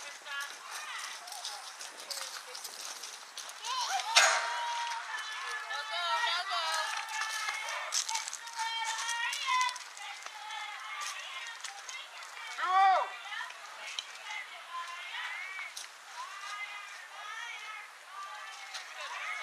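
Young girls chant and cheer outdoors at a distance.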